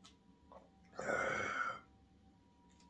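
A man lets out a satisfied sigh after drinking.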